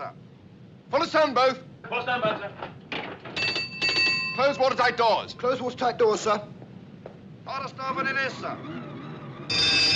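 A man speaks urgently in a voice from an old film recording.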